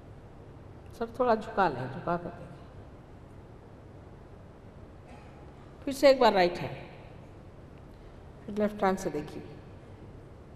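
An elderly woman speaks slowly into a microphone, in short phrases with long pauses.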